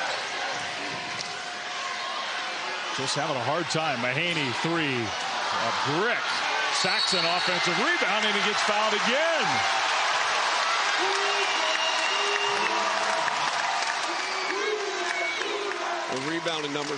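A large crowd roars and cheers in an echoing arena.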